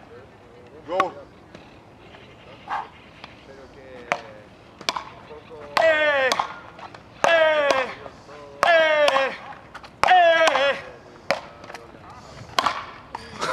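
Paddles strike a ball back and forth with sharp pops.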